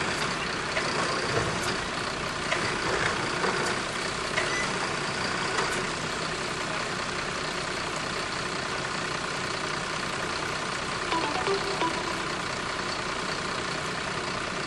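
A truck engine idles steadily nearby.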